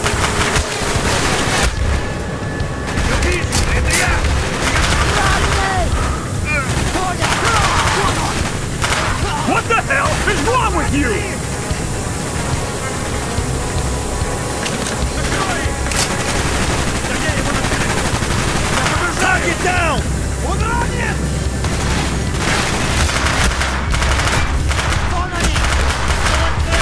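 Rapid gunfire rattles in bursts, close and loud.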